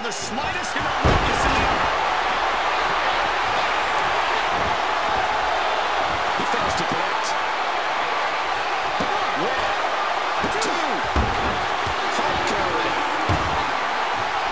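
Bodies slam heavily onto a wrestling ring mat with loud thuds.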